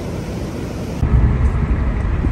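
A car's tyres rumble on the road from inside the car.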